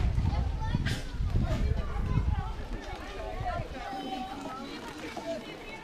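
A crowd of people chatters at a distance outdoors.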